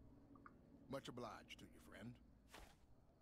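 A man with a deep voice speaks calmly and briefly.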